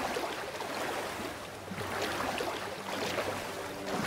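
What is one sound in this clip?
Water splashes and swishes with steady swimming strokes.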